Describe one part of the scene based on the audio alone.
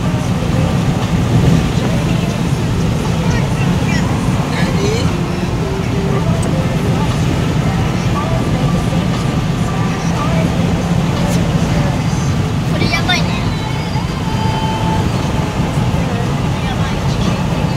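Tyres roll over the highway with a steady rumble.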